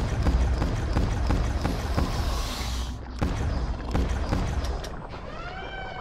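A gun fires shots in quick succession.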